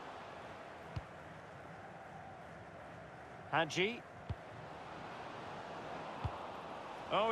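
A football is kicked with short dull thumps.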